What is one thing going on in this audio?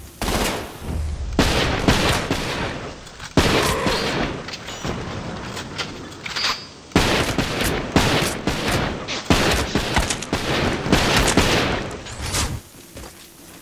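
Pistol shots fire rapidly with sharp cracks.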